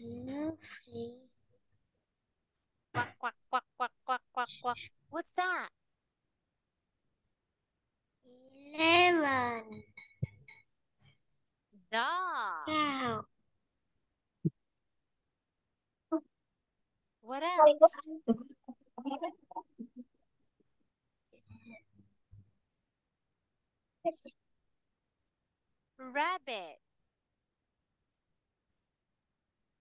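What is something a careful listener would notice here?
A young girl speaks over an online call.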